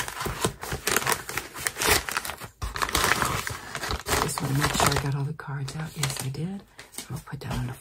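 An elderly woman talks calmly and close to a microphone.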